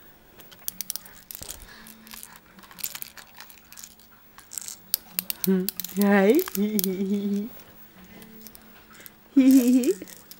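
Plastic toys rattle and clatter in a baby's hands.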